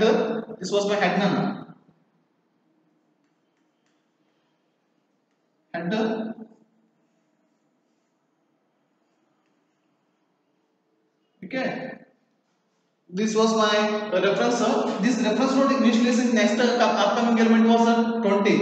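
A man speaks calmly and clearly, close by, in short bursts with pauses.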